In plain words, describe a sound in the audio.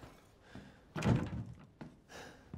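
A locked wooden door rattles as someone tries its handle.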